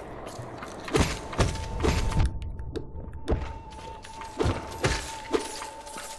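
Small creatures burst with wet splats.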